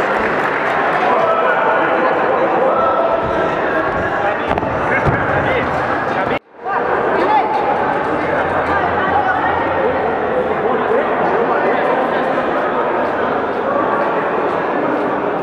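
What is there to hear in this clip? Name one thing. A crowd of spectators chatters and cheers loudly in a large echoing hall.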